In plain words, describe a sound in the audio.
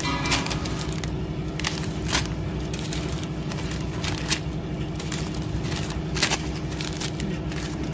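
Plastic packets rustle and drop onto a scale.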